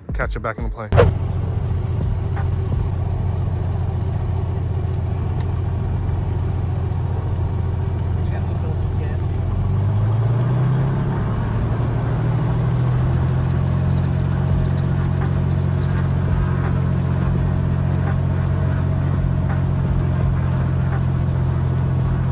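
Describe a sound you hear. A small propeller plane's engine drones loudly from inside the cabin.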